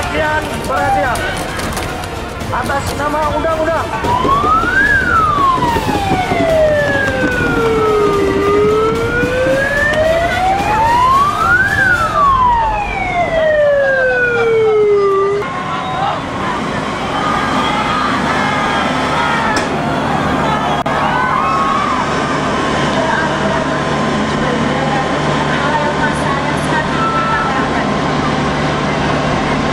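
A crowd of men shouts and talks outdoors.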